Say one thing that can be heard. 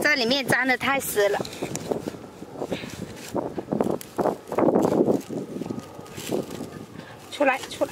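Fingers scrape and crumble loose, dry soil close by.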